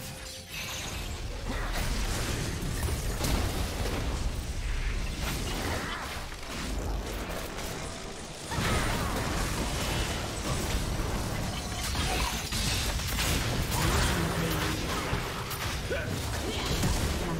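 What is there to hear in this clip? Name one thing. Video game combat effects crackle, whoosh and burst in quick succession.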